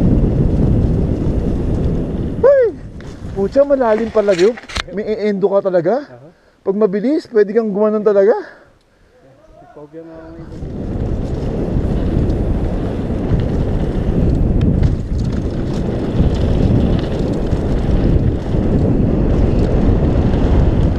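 Tyres crunch and rattle over a dirt trail.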